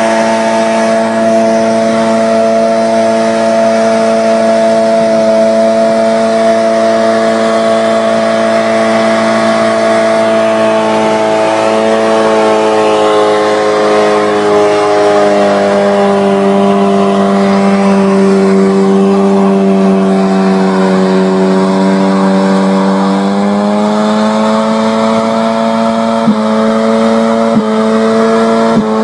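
A car engine roars at high revs, its pitch sagging and rising again.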